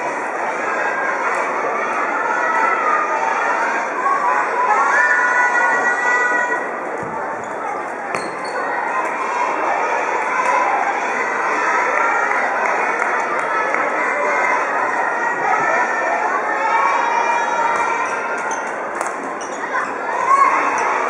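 Children's voices echo and chatter throughout a large hall.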